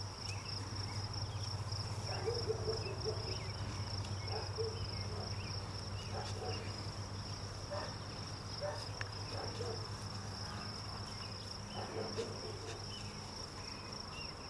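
A dog rustles through tall dry grass.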